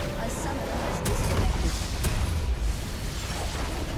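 A large structure explodes with a deep rumble.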